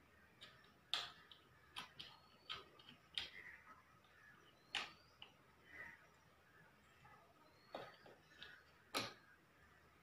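Small switches click sharply, one at a time.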